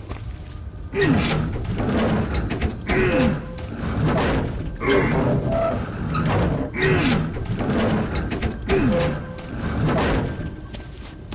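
A heavy wooden crate scrapes and grinds along metal rails in repeated shoves.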